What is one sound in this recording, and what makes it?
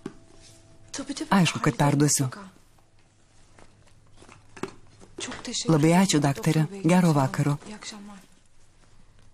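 A young woman speaks urgently into a phone, close by.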